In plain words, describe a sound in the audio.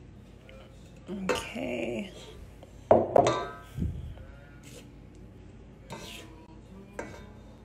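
A spatula scrapes and folds thick batter in a metal bowl.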